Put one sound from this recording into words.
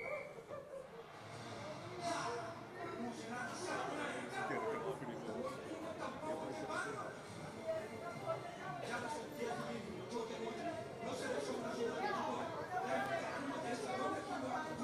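A crowd of men and women murmurs and talks quietly nearby.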